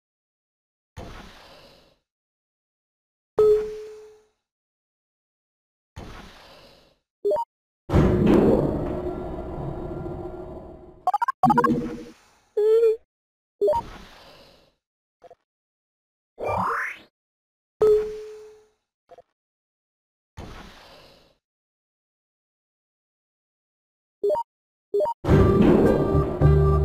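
Short electronic game blips and chimes sound now and then.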